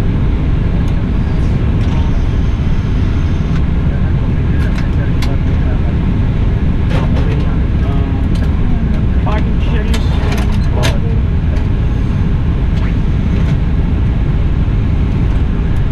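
Aircraft engines hum loudly and steadily.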